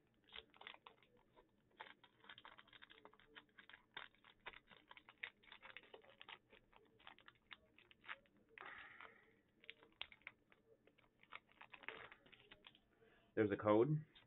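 Foil wrapping crinkles and rustles close by.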